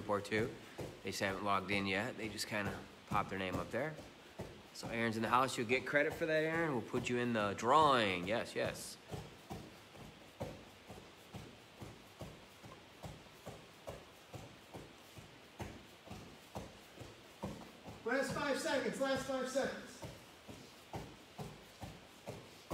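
Hands and feet pad softly on a rubber floor mat.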